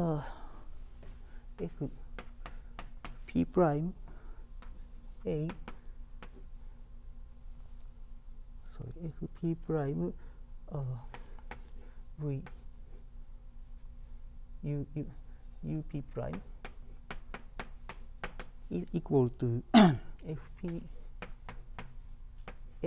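Chalk taps and scratches on a chalkboard.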